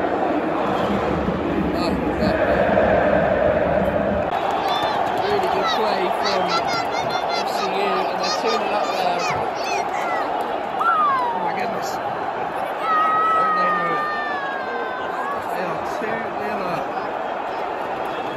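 A large stadium crowd roars and chants loudly.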